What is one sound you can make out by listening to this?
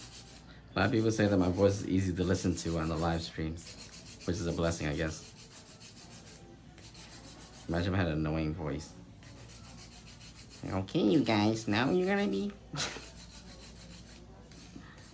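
A nail file scrapes back and forth across a fingernail.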